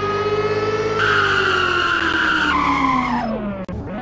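Tyres squeal as a car drifts.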